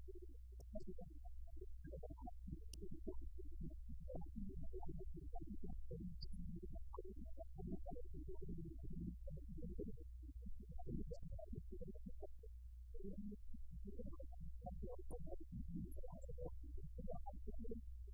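An older woman speaks calmly through a microphone.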